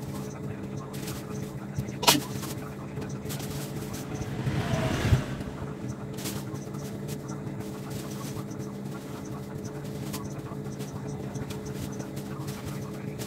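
Plastic packets rustle as they are set down on a shelf.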